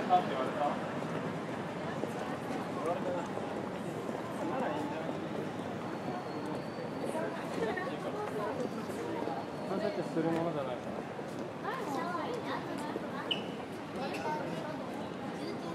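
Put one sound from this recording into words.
Young women chat quietly nearby.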